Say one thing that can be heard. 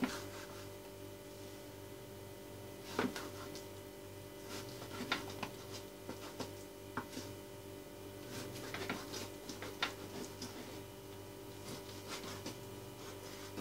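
A knife taps and scrapes on a cutting board as meat is sliced.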